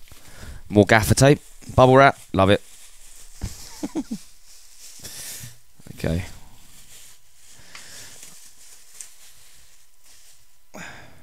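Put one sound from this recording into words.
Bubble wrap crinkles and rustles as it is unwrapped.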